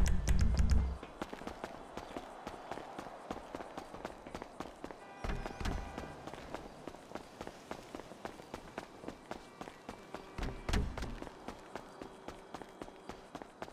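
Quick footsteps run over pavement.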